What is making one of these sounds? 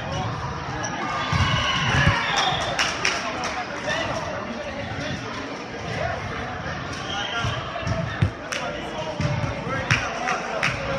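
A volleyball is struck with sharp slaps that echo around a large hall.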